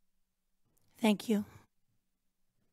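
A woman says a short word into a microphone.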